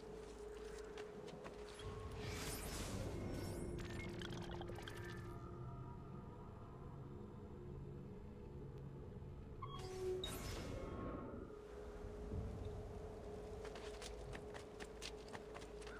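Footsteps run across the ground.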